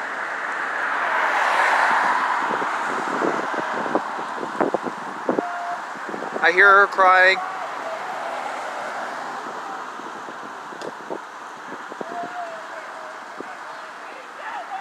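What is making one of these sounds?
Cars drive past on the road outdoors, their tyres hissing.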